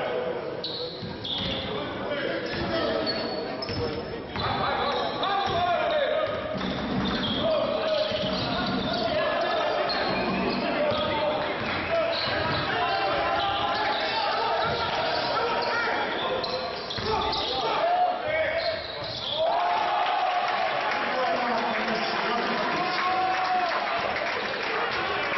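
A basketball bounces repeatedly on a hard court in an echoing hall.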